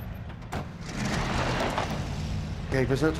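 Truck tyres crunch over gravel.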